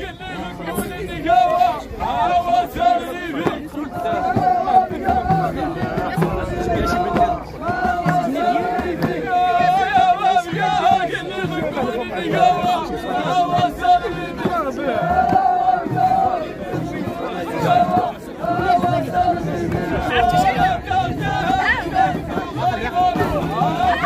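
Frame drums beat in a steady rhythm.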